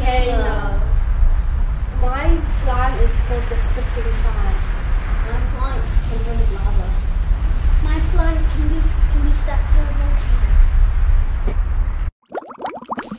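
Young boys speak in turn, close by.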